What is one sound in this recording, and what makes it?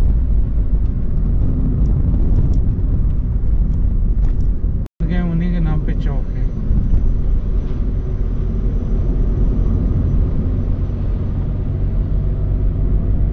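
A car engine hums and tyres roar steadily on the road from inside the car.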